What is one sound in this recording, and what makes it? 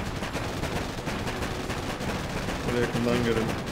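Gunfire and explosions rattle from a game.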